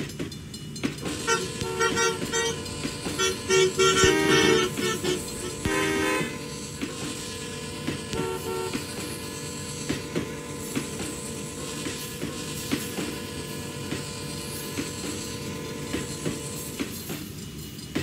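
Train wheels squeal and screech on the rails.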